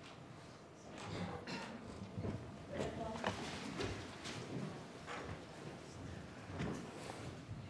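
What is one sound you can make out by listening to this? Chairs shift and feet shuffle as people stand up.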